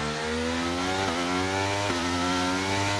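A racing car's gears shift with quick, sudden drops in engine pitch.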